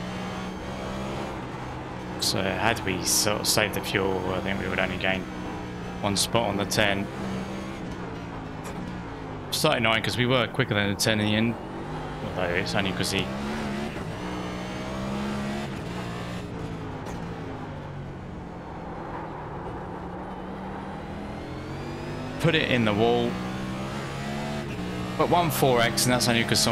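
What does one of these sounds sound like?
A race car engine drones steadily, its pitch rising and falling as it shifts gears.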